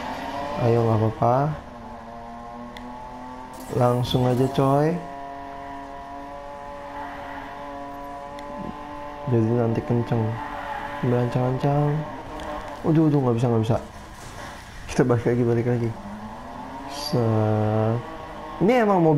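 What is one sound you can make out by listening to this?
A car engine roars and revs hard, rising and falling in pitch with each gear change.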